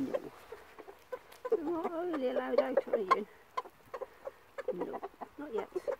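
A hen pecks at the ground with quick taps.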